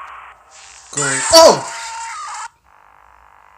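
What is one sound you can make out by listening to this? A shrill screech blares loudly.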